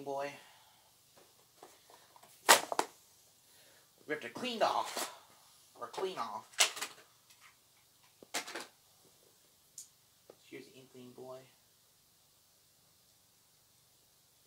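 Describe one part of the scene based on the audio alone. A plastic toy clicks and rattles in a young man's hands.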